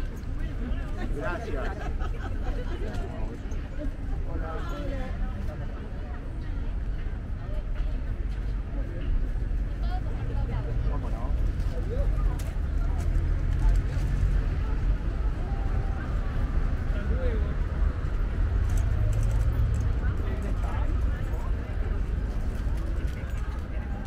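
Voices of people chatter in the distance.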